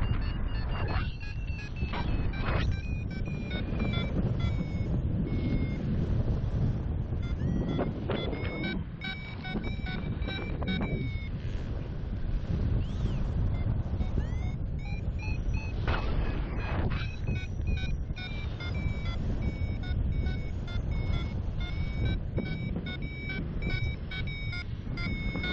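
Wind rushes and buffets loudly against the microphone outdoors.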